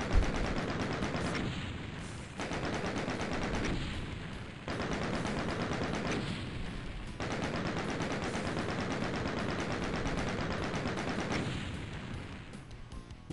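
A score tally ticks rapidly and continuously.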